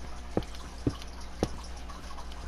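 Blocks break with short crunching knocks.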